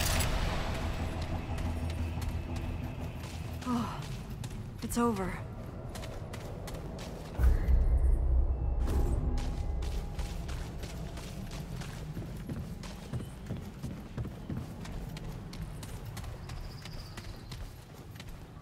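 Footsteps run over rough ground.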